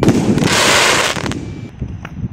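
A firework bursts with a loud crackling hiss.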